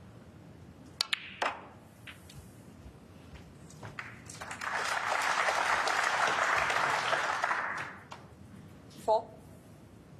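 Snooker balls knock together with a hard clack.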